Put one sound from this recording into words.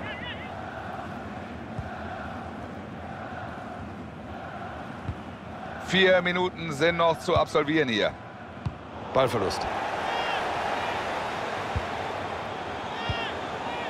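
A large crowd murmurs and chants steadily in a stadium.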